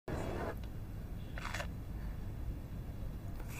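A young woman licks and sucks an ice lolly with soft wet slurping sounds.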